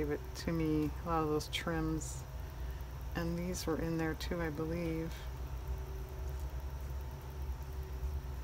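Small embellishments tap softly onto a paper card.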